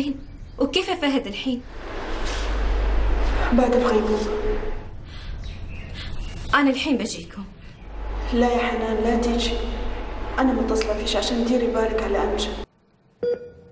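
A young woman talks on a phone in an upset voice.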